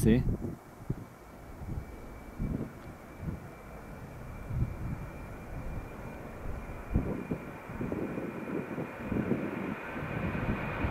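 A jet engine roars and whines in the distance as an airliner speeds up for takeoff.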